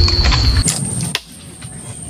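Water splashes as a fish breaks the surface.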